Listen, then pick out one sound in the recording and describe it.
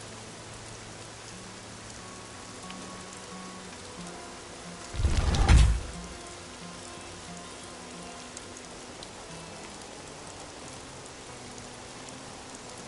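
A game menu clicks softly as the selection changes.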